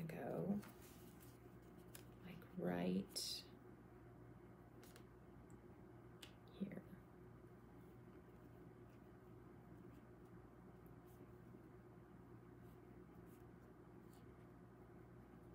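Hands rub and press on paper.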